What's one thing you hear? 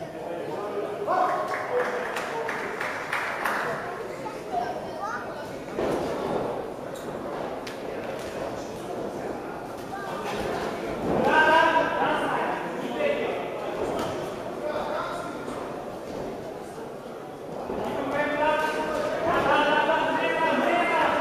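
Men shout loudly in a large echoing hall.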